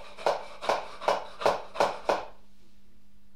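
A hand pump squeaks and puffs in quick strokes.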